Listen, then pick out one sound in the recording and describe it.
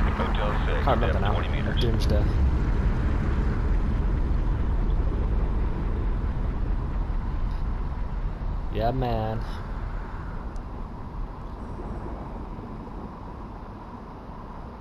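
An underwater motor hums with a deep, steady rumble that slowly fades.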